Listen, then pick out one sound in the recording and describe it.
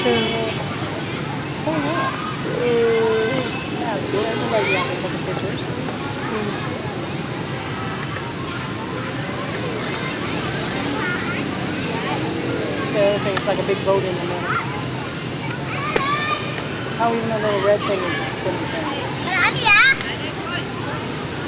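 Children shout and squeal at play nearby and far off.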